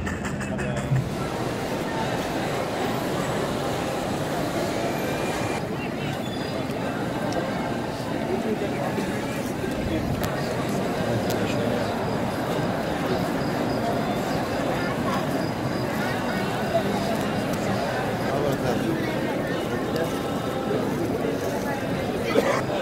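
A large crowd murmurs and chants.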